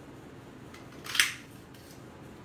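Paper rustles briefly as a card is lifted and moved.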